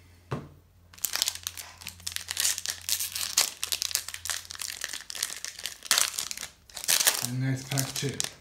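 A foil wrapper crinkles and rustles loudly.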